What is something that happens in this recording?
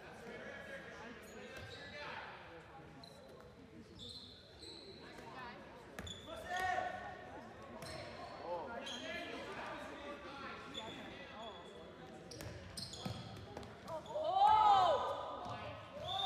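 A ball thuds as it is passed and caught.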